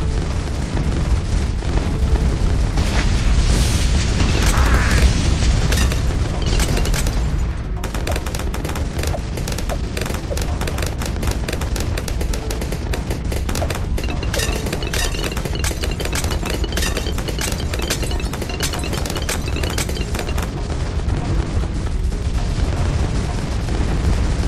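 Game explosions boom and pop rapidly.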